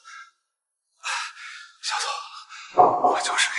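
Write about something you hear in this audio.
A young man speaks coldly and close by.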